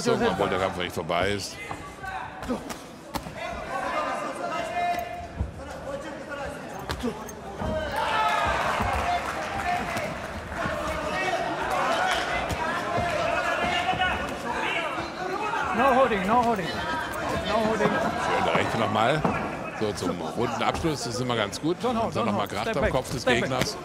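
Gloved punches thud against bodies.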